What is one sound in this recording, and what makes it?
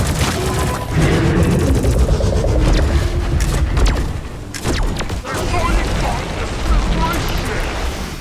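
A weapon roars steadily as it sprays fire.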